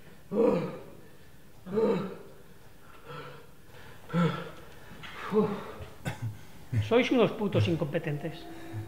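A middle-aged man speaks in short, tense phrases nearby.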